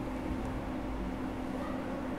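A man types on a laptop keyboard.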